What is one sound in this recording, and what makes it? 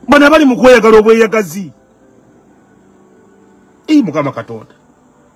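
A man speaks with animation close to the microphone, pausing between phrases.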